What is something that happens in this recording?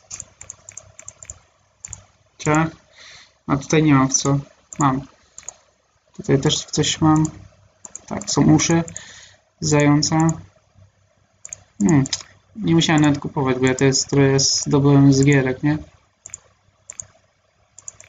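Short game menu clicks sound as buttons are pressed.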